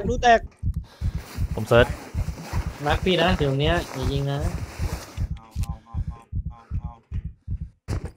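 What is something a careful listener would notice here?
Footsteps thud steadily through grass.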